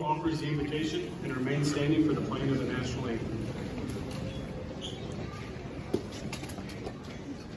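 A crowd of young men talks and murmurs in a large echoing hall.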